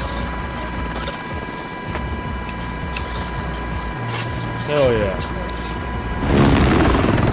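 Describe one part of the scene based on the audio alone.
A helicopter's rotors thump steadily.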